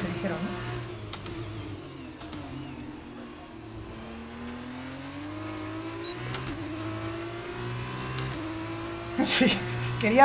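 A racing car engine revs high, rising and dropping with each gear change.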